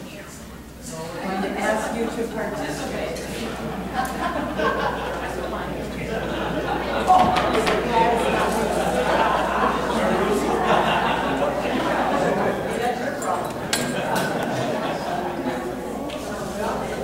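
A seated audience chatters and murmurs.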